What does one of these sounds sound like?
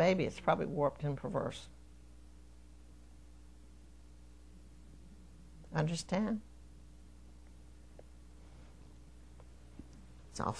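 An elderly woman speaks calmly into a microphone, with long pauses.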